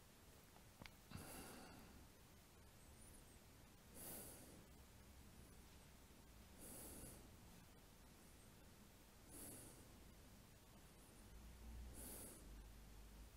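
A man breathes out slowly and deeply at even intervals.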